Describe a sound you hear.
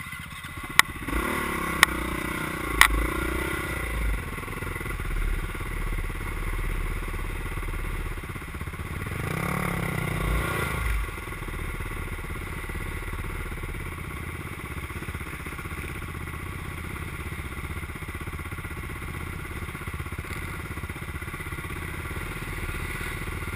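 A second dirt bike engine revs hard nearby.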